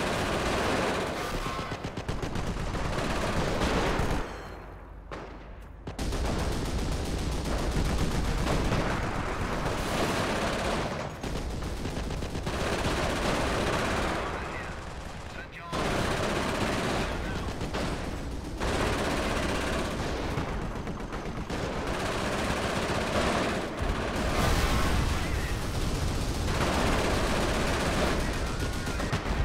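Gunfire rattles in a battle.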